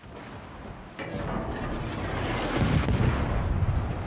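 Shells explode with loud rumbling bursts.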